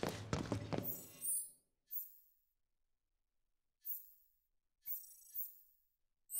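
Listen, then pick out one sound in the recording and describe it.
Soft electronic menu blips chime now and then.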